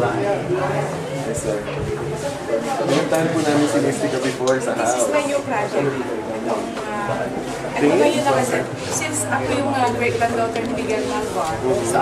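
A man talks close by with an elderly man.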